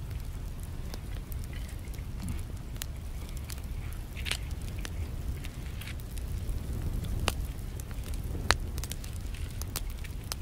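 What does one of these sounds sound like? A small wood fire crackles and pops.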